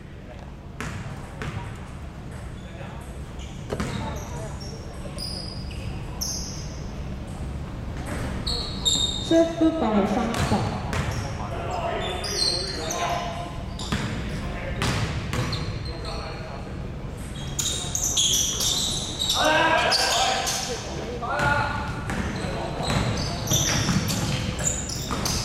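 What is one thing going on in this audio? A basketball bounces on a wooden gym floor.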